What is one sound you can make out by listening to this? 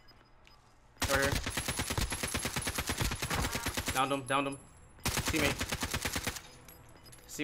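Rapid gunfire rattles from a rifle.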